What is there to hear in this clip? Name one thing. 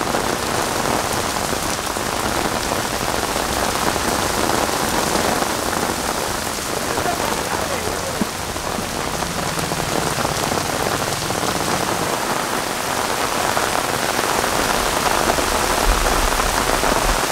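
Heavy rain pours down and splashes on pavement outdoors.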